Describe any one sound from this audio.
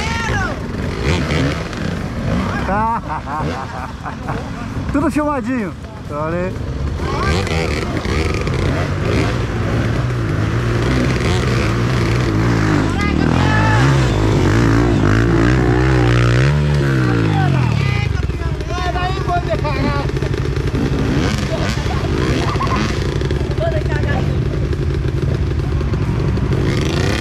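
Dirt bike engines rev and strain up a muddy slope.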